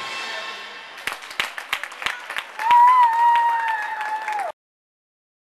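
A small crowd claps in an echoing rink.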